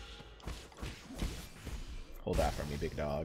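Quick sword slashes and impacts clatter in a video game.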